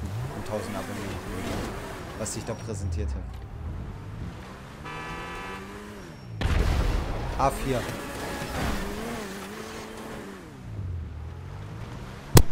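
A sports car engine revs up and down repeatedly.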